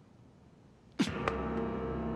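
A phone drops with a soft thud onto a cushion.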